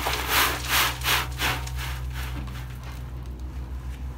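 Soil pours and scrapes out of a tipped wheelbarrow.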